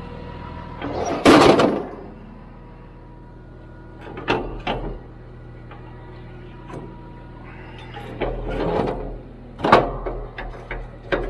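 Metal clanks and knocks as it is handled.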